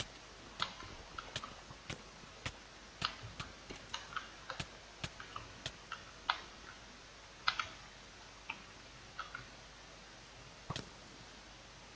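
A pickaxe chips rapidly at stone and dirt.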